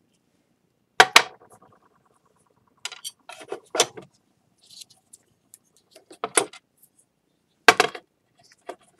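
A metal scraper knocks and clatters on a hard tray.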